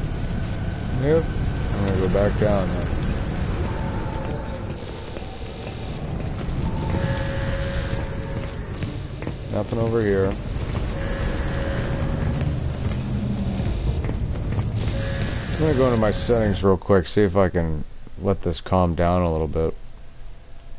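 A young man talks through a headset microphone.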